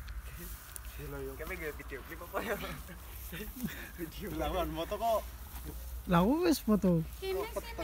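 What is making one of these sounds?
Young men talk and call out loudly nearby outdoors.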